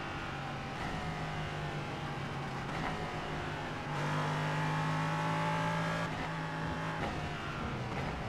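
A race car engine roars and changes pitch as the car shifts gears.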